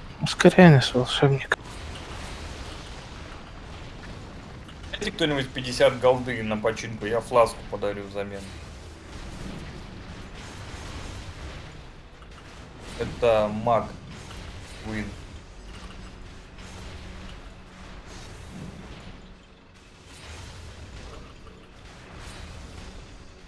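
Magic blasts whoosh and crackle during a fight.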